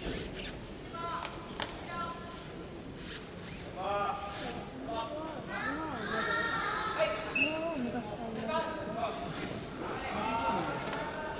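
Young women chatter nearby in a large echoing hall.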